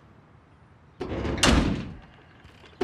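A heavy metal door swings shut with a loud thud.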